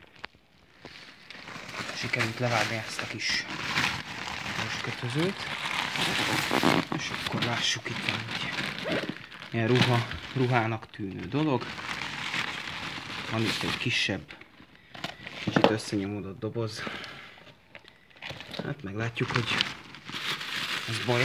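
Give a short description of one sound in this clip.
A plastic bag rustles and crinkles as it is handled up close.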